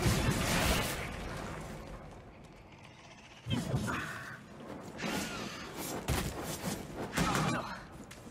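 Heavy blows thud and crash in a fight.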